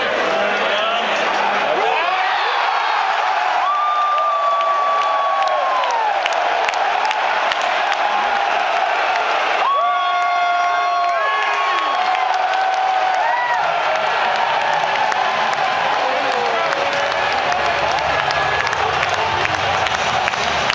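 A large crowd cheers and roars loudly in a big echoing arena.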